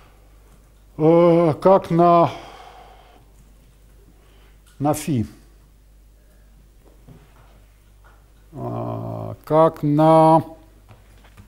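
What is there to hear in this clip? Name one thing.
An elderly man lectures in short bursts, his voice echoing in a large room.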